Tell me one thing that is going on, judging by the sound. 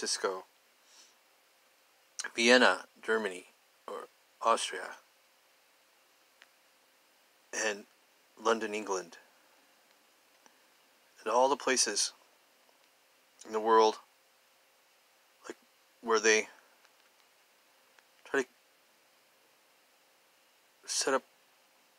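A middle-aged man speaks calmly and close to the microphone, in short phrases with pauses.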